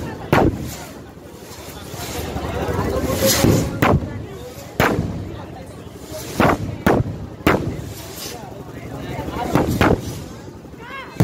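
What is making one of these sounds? Rockets whoosh as they shoot upward.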